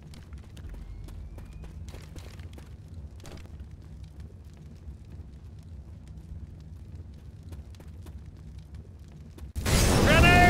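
A bottle bomb's lit rag crackles softly.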